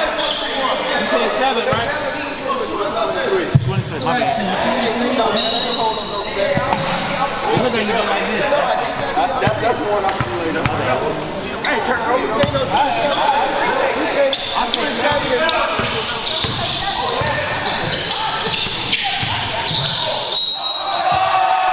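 A crowd of spectators chatters throughout in a large echoing gym.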